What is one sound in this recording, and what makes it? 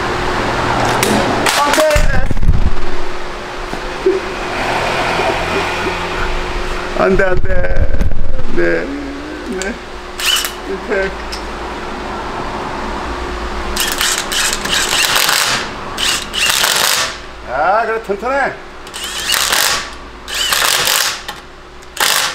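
An impact wrench whirs in short bursts, spinning wheel nuts.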